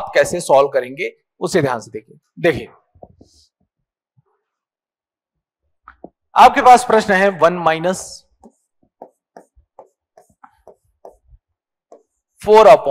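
A man explains calmly and clearly, close to a microphone.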